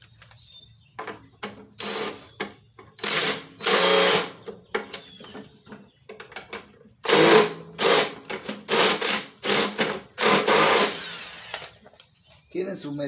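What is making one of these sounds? A ratchet wrench clicks rapidly.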